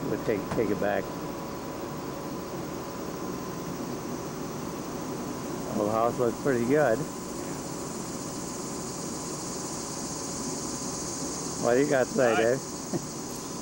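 A young man talks nearby in short bursts.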